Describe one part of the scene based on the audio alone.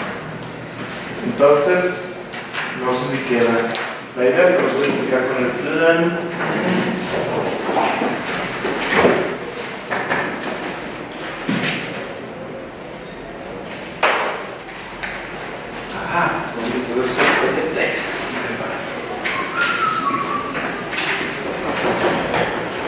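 Papers rustle and shuffle.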